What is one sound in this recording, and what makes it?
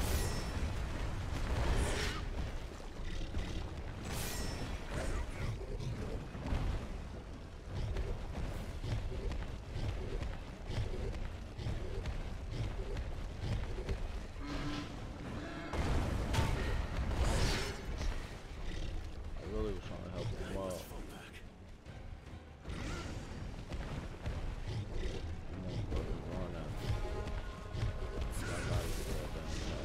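Heavy weapon blows strike and clang again and again.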